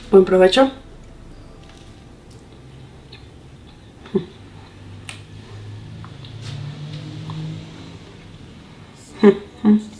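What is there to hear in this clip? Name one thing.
A young woman chews food.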